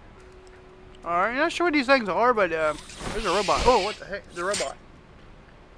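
A small robot warbles and chirps in quick electronic bursts.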